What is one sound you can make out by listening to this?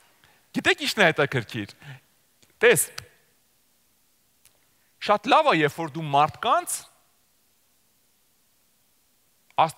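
A man speaks with animation through a microphone, pausing between phrases.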